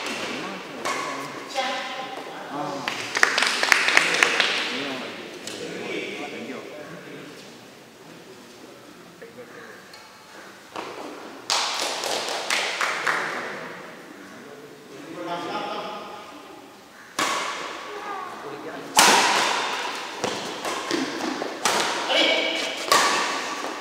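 Shuttlecocks are struck with sharp pops of badminton rackets in an echoing hall.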